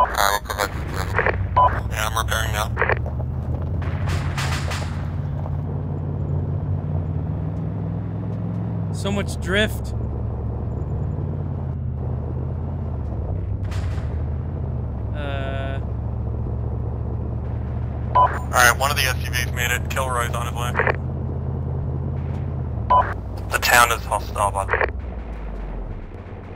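A car engine hums steadily while driving, shifting pitch now and then.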